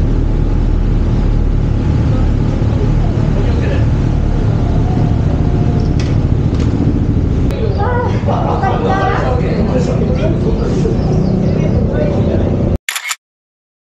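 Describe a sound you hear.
A motorcycle engine idles with a deep, steady rumble close by.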